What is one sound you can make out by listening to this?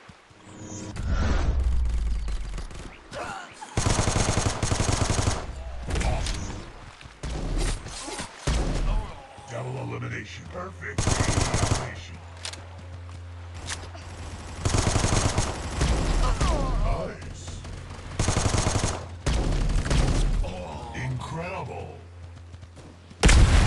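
Gunshots fire in rapid bursts in a game.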